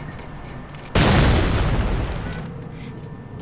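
Footsteps clatter quickly down metal stairs.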